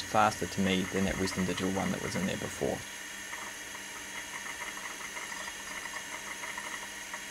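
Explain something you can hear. An old computer hums steadily with a faint high whine.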